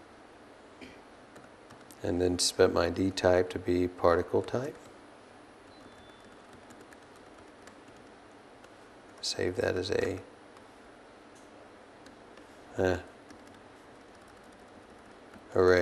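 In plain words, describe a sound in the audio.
Computer keys click softly.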